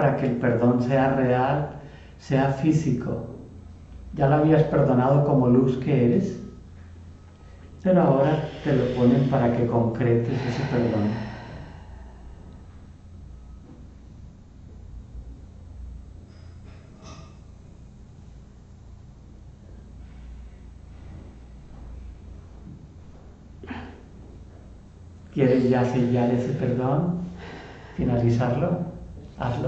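An elderly man speaks calmly nearby, pausing between phrases.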